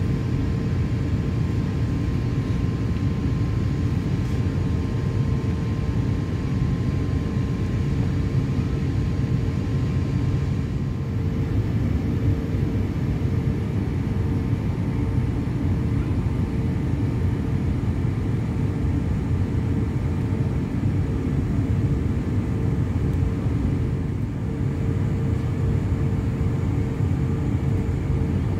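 Jet engines hum and rumble steadily from inside a taxiing airliner's cabin.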